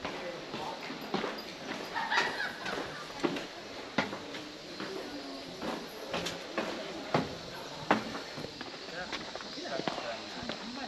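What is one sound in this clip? Footsteps tap on stone floors at a steady walking pace.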